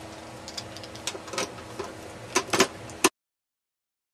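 A screwdriver scrapes and clicks on metal screws.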